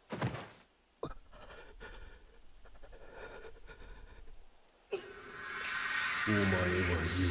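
A young man speaks tensely and quietly.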